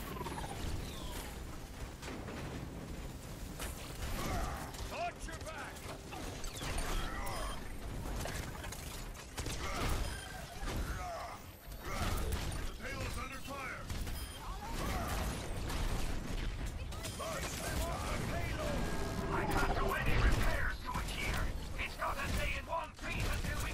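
Energy weapons fire in rapid crackling bursts.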